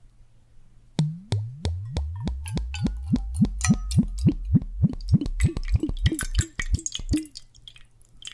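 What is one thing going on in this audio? Liquid gurgles in bursts as it pours from a bottle into a cup, close by.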